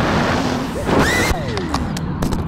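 A drone crashes into the ground with a thud.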